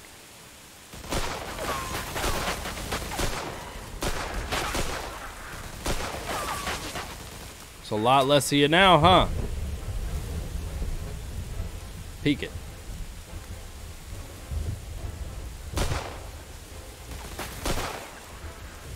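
Gunshots ring out repeatedly.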